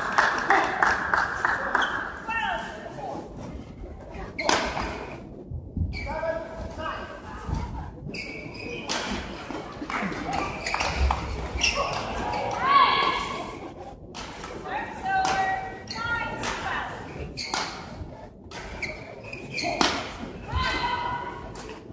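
Rackets smack a shuttlecock back and forth in sharp hits.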